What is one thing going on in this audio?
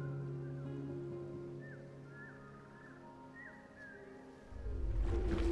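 Waves wash gently onto a sandy shore.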